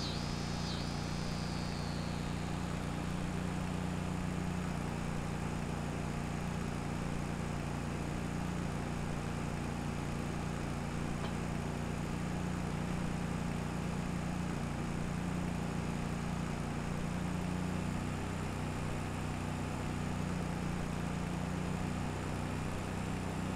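A conveyor motor hums and rumbles steadily.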